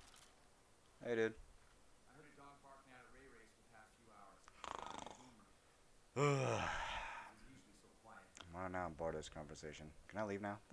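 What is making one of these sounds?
A young man talks calmly nearby.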